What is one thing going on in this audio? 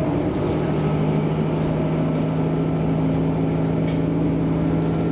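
A train engine hums steadily from inside a moving carriage.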